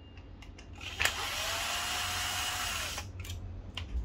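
A cordless drill whirs as it drives a screw.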